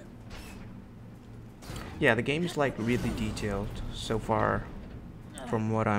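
Heavy metal doors creak and scrape open.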